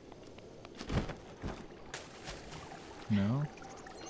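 A splash sounds as a figure drops into water.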